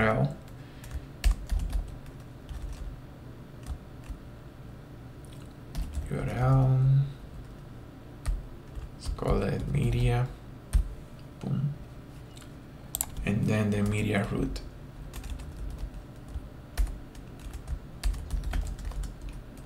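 Keys clatter on a keyboard in short bursts.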